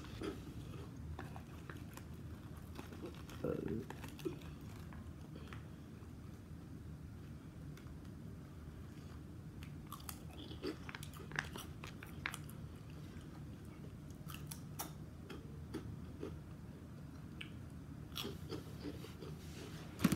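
A girl eats a crunchy snack close by.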